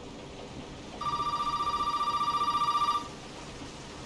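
A telephone rings loudly with a shrill electronic trill.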